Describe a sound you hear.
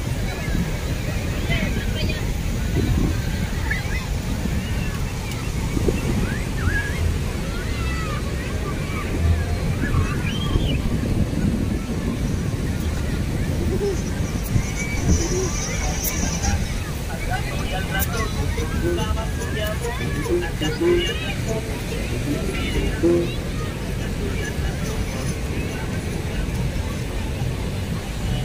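Waves break and wash onto the shore, heard outdoors.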